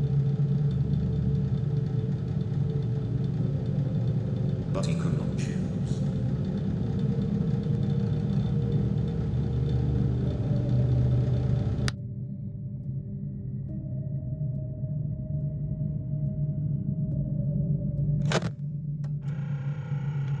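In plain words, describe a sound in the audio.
A desk fan hums steadily.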